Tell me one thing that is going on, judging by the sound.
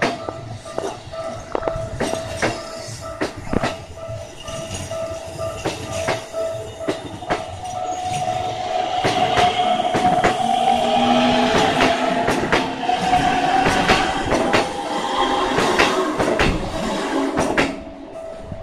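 A train rumbles past close by and then fades away.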